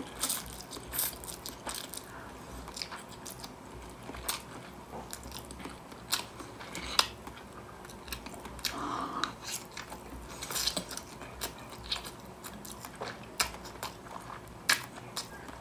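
Wet chewing and smacking sounds come from close up.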